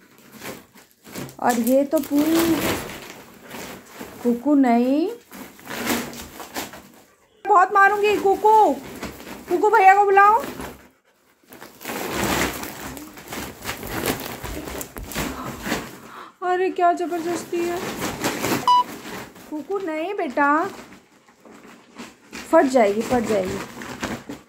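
A dog tugs at a plastic sack, making it rustle and crinkle.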